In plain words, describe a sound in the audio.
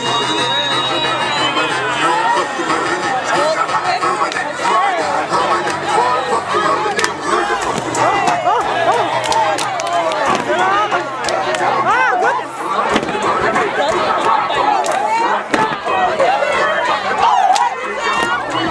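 A crowd of young men and women shout and cheer loudly close by.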